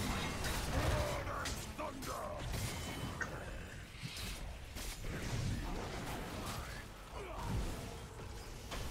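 Game battle effects blast and clash with spell impacts.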